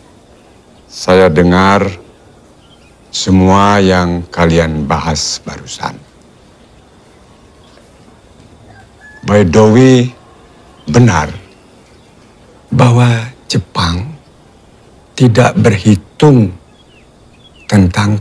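An elderly man speaks slowly and gravely, close by.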